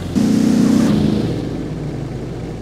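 Car tyres screech loudly as a car skids to a stop.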